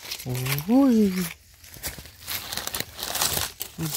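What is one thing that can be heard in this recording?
Dry leaves rustle and crackle under a hand.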